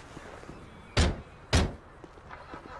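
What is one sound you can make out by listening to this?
A car door slams shut twice.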